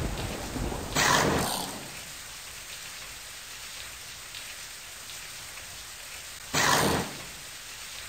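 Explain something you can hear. A shower curtain slides along its rail.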